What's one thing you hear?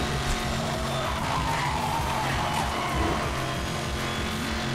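Tyres screech while drifting around a bend.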